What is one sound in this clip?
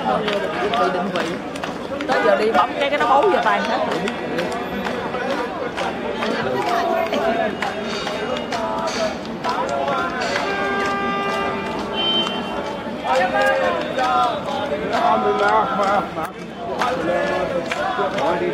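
A large crowd chatters and talks outdoors.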